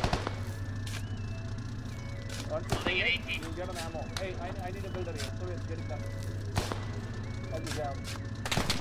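A shovel digs into sandy ground with dull scraping thuds.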